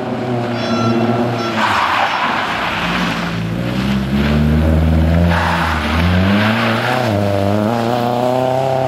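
A rally car engine revs hard and roars as the car speeds past.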